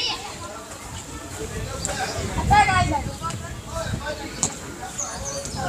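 Children shout to each other outdoors.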